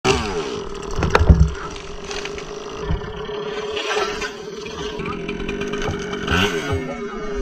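A chainsaw engine runs steadily nearby.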